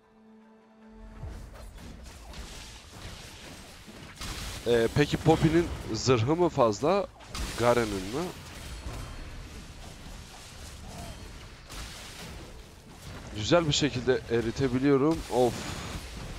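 Battle sound effects of magic blasts and clashing blows crackle and boom.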